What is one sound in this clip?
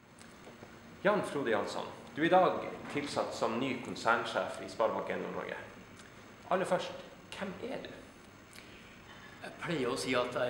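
A second man speaks calmly up close, answering.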